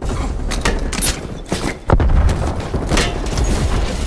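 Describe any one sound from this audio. A blade hacks into a body with a dull thud.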